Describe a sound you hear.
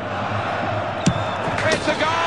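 A football is struck hard with a thump.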